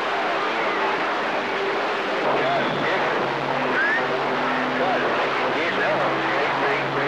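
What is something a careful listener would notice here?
Static hisses steadily from a radio receiver's loudspeaker.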